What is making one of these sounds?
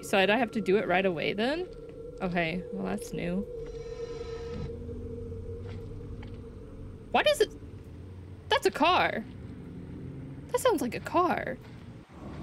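A young woman talks with animation into a microphone, in short bursts.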